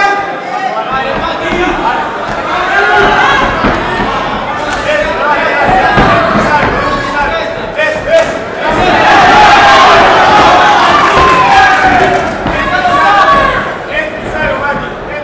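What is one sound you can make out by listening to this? A large crowd shouts and cheers in a big echoing hall.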